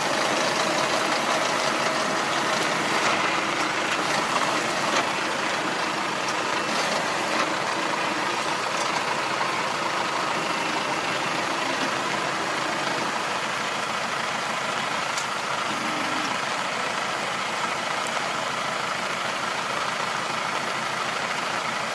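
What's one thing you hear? A rotary tiller churns through wet, muddy soil.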